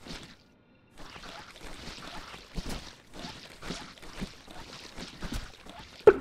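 A weapon sprays in rapid noisy bursts.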